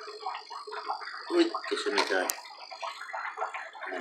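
Water splashes softly as a small fish drops into it.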